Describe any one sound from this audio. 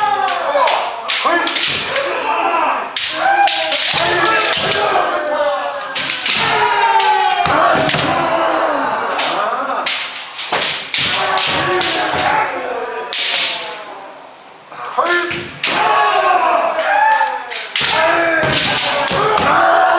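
Bare feet stamp on a wooden floor.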